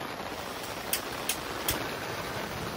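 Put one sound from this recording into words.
A gas torch igniter clicks a few times.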